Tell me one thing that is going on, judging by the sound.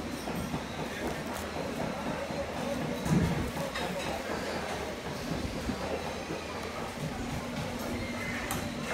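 Many people chatter in a busy room.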